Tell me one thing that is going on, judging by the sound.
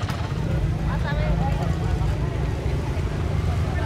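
Motorbike engines hum and putter in busy traffic.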